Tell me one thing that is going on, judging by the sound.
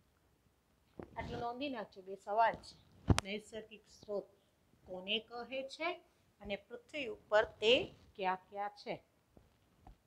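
A woman speaks clearly, as if teaching, close by.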